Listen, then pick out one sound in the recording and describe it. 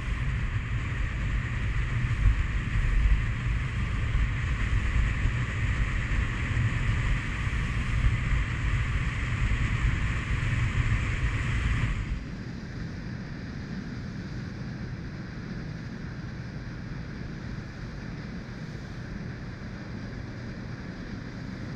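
A boat's motor drones steadily and then drops to a quieter idle.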